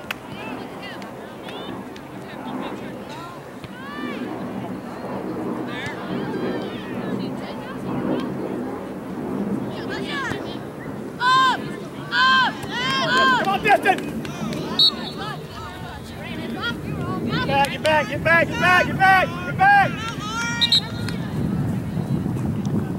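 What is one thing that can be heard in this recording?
Girls shout and call out across an open outdoor field.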